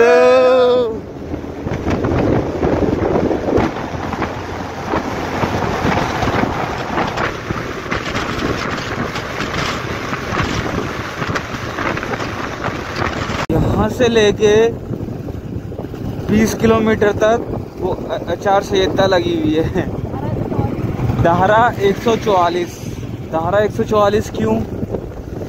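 Wind rushes past a moving motorbike.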